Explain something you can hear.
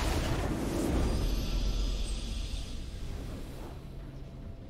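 A triumphant fanfare rings out.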